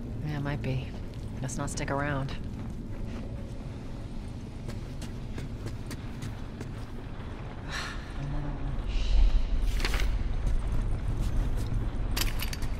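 Footsteps tread on hard ground and stairs.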